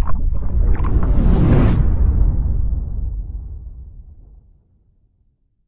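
Water splashes and bursts with a loud whoosh, then fades away.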